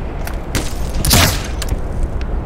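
A crossbow fires with a sharp twang.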